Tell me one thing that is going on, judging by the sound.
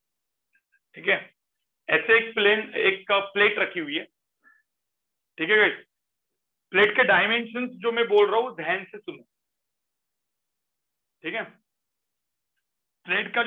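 A man speaks calmly, heard through a microphone on an online call.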